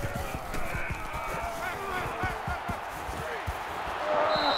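Padded players thud heavily as they collide.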